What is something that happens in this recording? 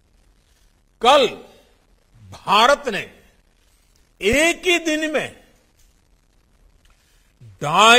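An elderly man speaks slowly and emphatically into a microphone, with long pauses.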